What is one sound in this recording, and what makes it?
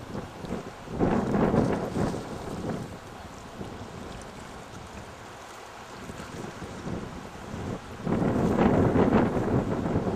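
Wind buffets the microphone in strong gusts outdoors.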